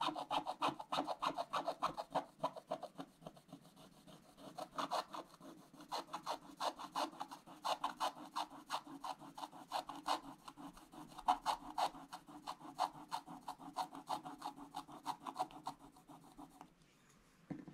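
A thin brush scrapes quickly across paper.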